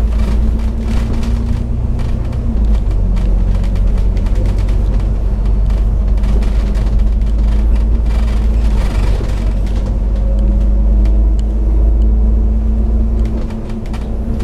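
A vehicle engine hums steadily as it drives along a road.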